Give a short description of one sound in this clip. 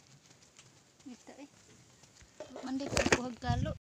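A young child speaks loudly, very close.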